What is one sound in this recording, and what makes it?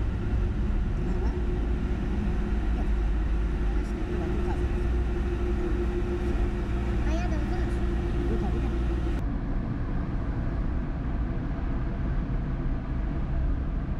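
A car engine hums steadily inside an echoing tunnel.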